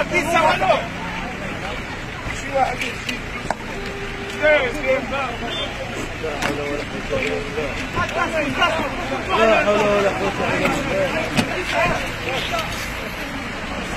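A crowd of men talks over one another outdoors.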